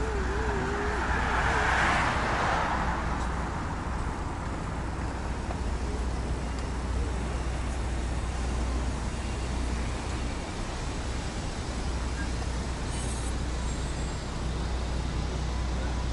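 Traffic rumbles steadily past on a road close by.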